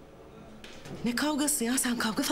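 A woman speaks urgently, close by.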